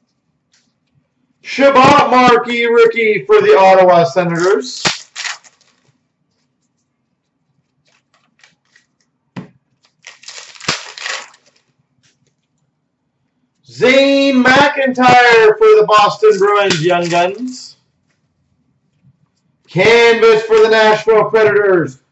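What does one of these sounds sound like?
Playing cards rustle and flick as a hand flips through them.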